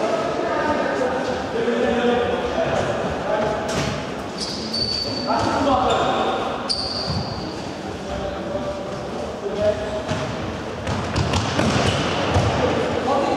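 A ball thumps as it is kicked and bounces on the floor.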